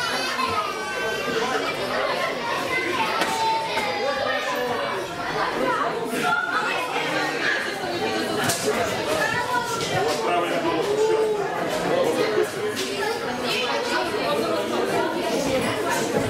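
A crowd of spectators shouts and cheers indoors.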